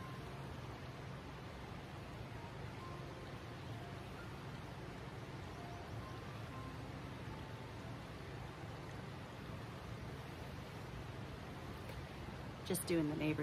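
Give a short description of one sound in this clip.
A creek flows steadily nearby.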